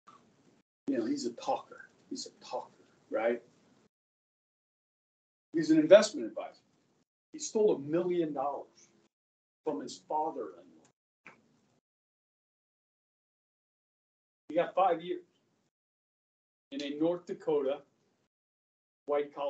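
A middle-aged man speaks with animation in short bursts, heard through a microphone in a room.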